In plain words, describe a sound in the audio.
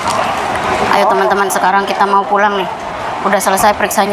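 A middle-aged woman speaks close to the microphone.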